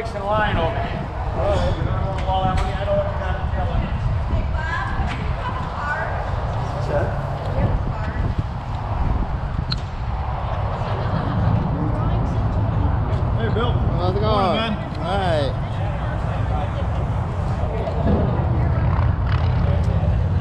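Wind rumbles outdoors against the microphone.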